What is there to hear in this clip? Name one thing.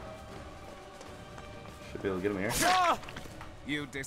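A blade slashes and strikes a person.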